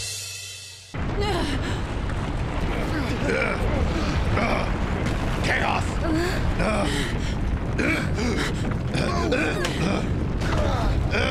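A woman talks with animation into a microphone.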